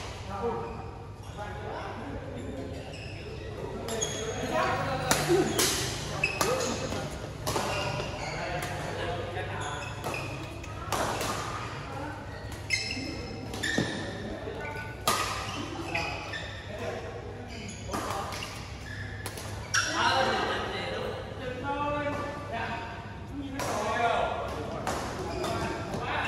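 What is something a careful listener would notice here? Shuttlecocks are struck sharply with rackets, again and again.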